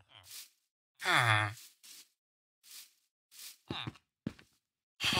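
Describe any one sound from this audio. Footsteps thud softly on grass and wood.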